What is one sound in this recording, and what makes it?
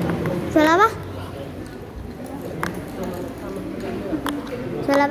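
Several people chat quietly in the background.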